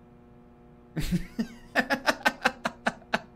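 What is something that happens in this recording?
A man laughs heartily into a close microphone.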